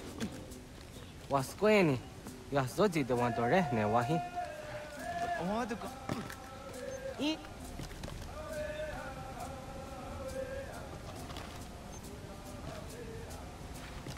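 Hands and feet scrape on tree bark during a climb.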